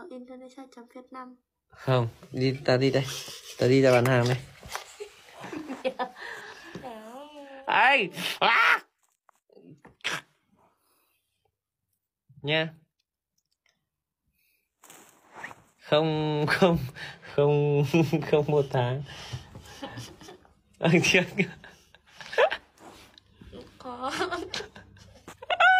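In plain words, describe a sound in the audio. A young man talks and laughs playfully, close by.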